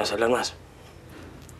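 A young woman speaks briefly nearby.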